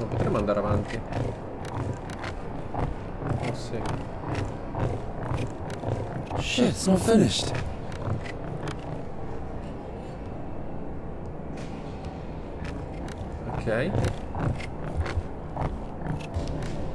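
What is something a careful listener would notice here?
Footsteps creak on wooden planks.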